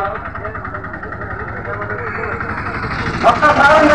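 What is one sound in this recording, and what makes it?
A motor rickshaw engine idles nearby with a low rattle.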